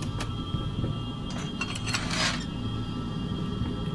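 A metal gate rattles open.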